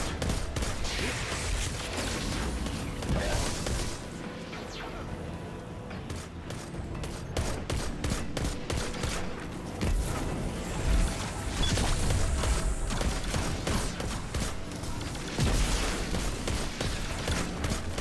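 Energy blasts explode with deep booms.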